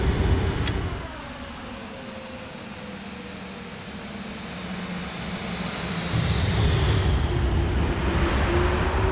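A jet airliner whines overhead as it approaches, its pitch falling as it passes.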